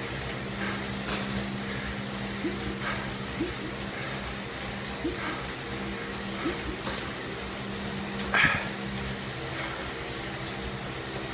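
An indoor bike trainer hums steadily as a man pedals.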